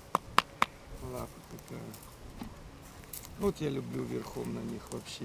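A man talks calmly and warmly nearby.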